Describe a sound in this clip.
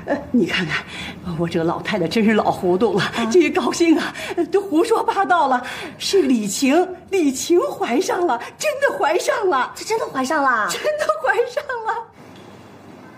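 An older woman talks excitedly and laughs nearby.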